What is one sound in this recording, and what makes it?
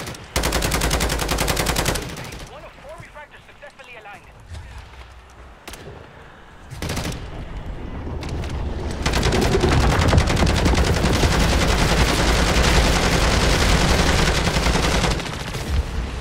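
An automatic rifle fires in rapid bursts.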